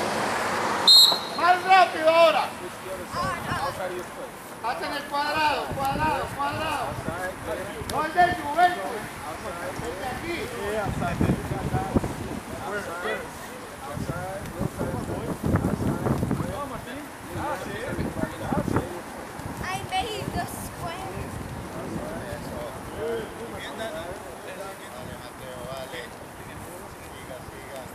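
Soccer balls thud as children kick them on grass.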